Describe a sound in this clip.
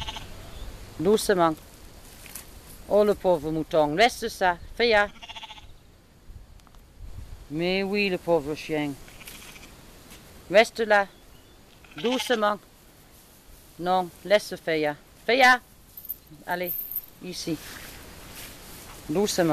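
A sheep bleats loudly and repeatedly outdoors.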